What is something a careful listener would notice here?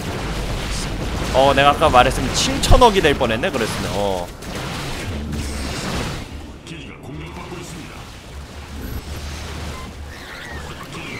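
Futuristic weapons zap and crackle in a battle.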